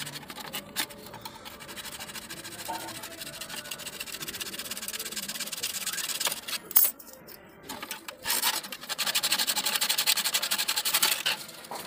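A plastic tool scrapes and prys against a plastic grille.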